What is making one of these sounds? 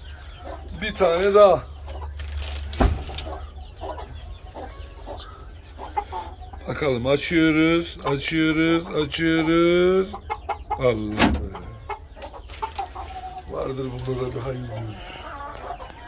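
A rooster crows loudly nearby.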